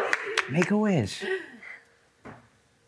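A woman speaks warmly and laughs close by.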